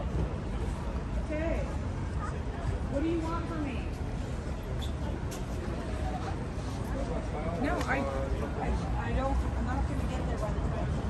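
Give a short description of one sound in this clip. Adults talk and chatter nearby.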